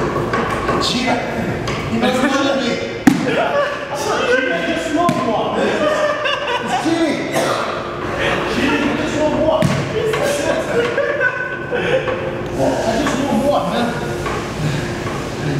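A young man laughs and talks with animation nearby.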